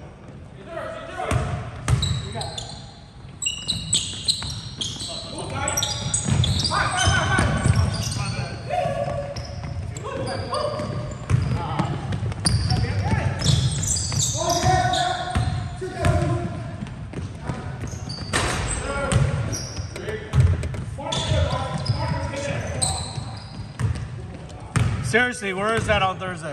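Young men shout and call out to each other across an echoing gym.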